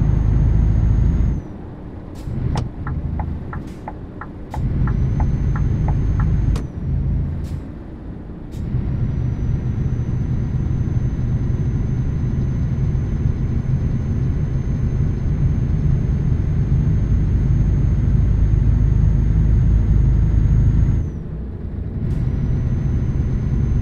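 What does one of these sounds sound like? A truck engine drones steadily, dropping away briefly during gear changes.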